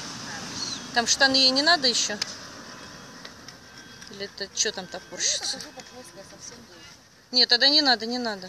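A young woman talks to a dog in a high, coaxing voice nearby.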